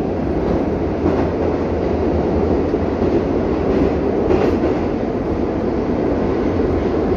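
A subway train rumbles and roars loudly along the tracks.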